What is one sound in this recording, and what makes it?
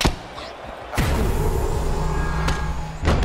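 A kick strikes a body with a heavy thump.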